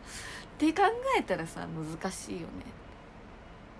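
A young woman speaks close up, with emotion.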